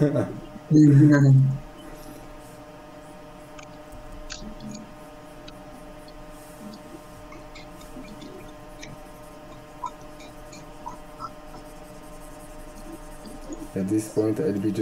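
A young man speaks casually over an online call.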